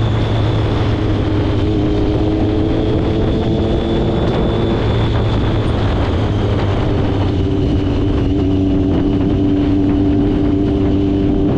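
Wind rushes past loudly.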